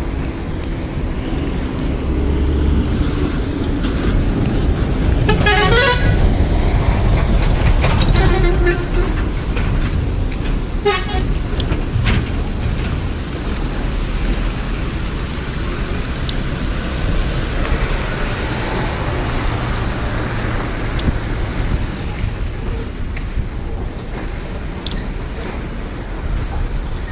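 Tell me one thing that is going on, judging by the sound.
Footsteps crunch on a dirt road.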